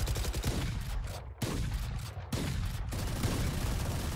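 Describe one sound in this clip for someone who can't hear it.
Rapid gunshots ring out in a video game.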